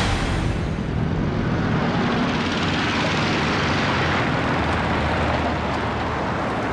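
Motorcycle engines roar and rattle as they drive past.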